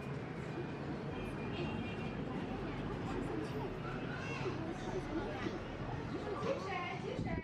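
Many people chatter indistinctly in a busy room.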